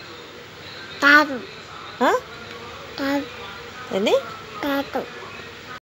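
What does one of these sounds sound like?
A young child close by makes short, high-pitched vocal sounds over and over.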